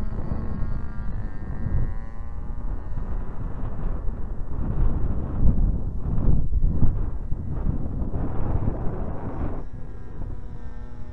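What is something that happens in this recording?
A model plane's electric motor whines steadily.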